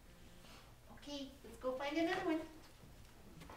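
A woman speaks to a dog in a bright, sing-song voice.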